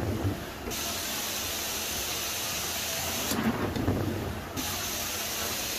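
A carpet cleaning wand sucks up water with a loud, steady hiss that briefly cuts out.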